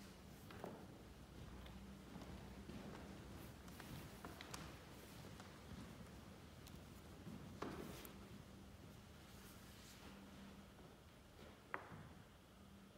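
Paper rustles as pages and sheets are handled close by.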